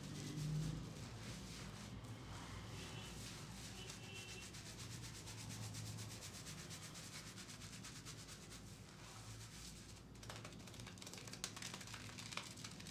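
Hands scrub and squish soapy lather in hair, close up.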